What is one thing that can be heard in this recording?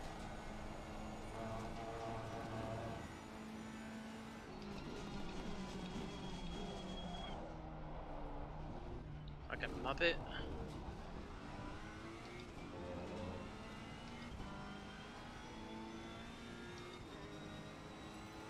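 A racing car engine roars and changes pitch as it shifts gears.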